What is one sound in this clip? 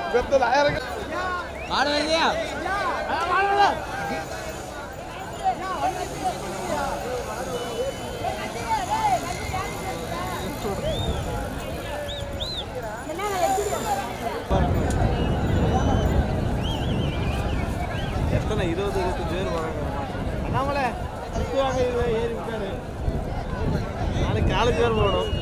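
A crowd of men shout and call out outdoors.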